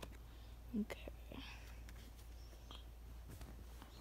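Playing cards rustle softly as they are handled.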